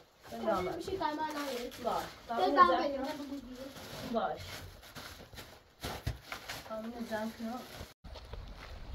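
Young children talk and shout excitedly close by.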